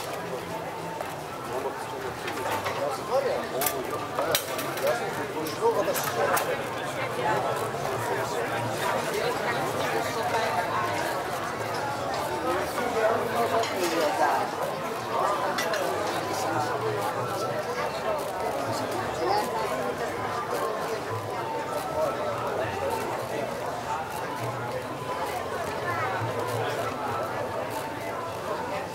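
A crowd of people chatter all around outdoors.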